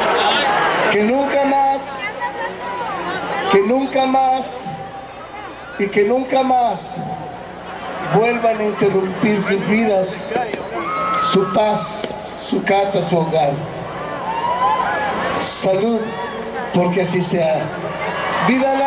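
An older man speaks slowly and with feeling through a microphone and loudspeakers.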